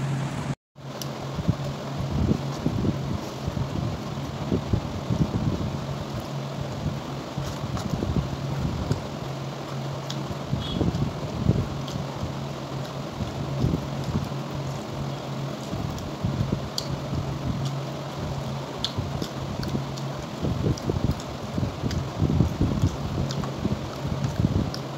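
A woman chews food with her mouth close to the microphone.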